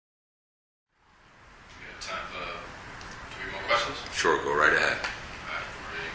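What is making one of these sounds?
An elderly man speaks calmly, close by, in a room.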